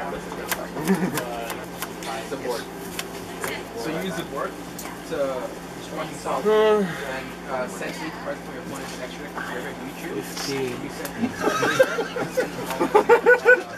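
A deck of cards is shuffled by hand.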